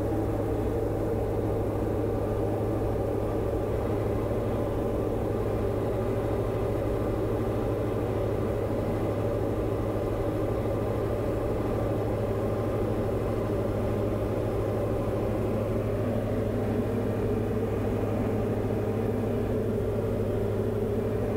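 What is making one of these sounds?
A small plane's engine drones steadily from inside the cabin.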